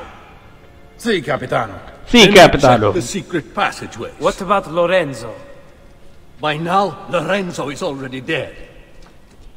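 Men talk firmly and close by, one after another.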